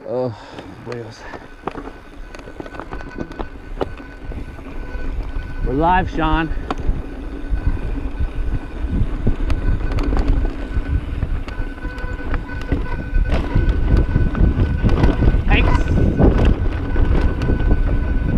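Bicycle tyres rumble and rattle over a rocky trail.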